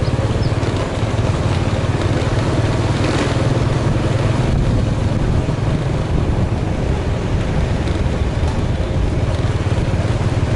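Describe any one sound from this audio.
A motorbike engine hums steadily while riding along a road.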